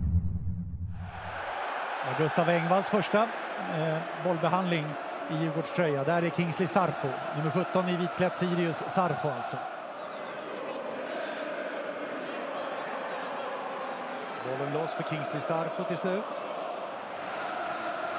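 A large stadium crowd murmurs and chants in the distance.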